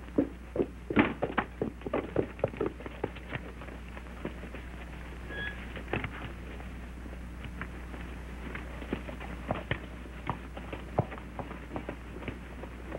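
Horse hooves clop and thud on hard ground.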